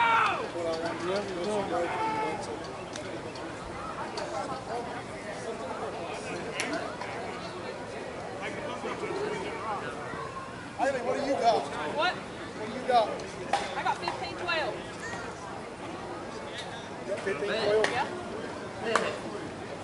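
Men call out to each other across an open field.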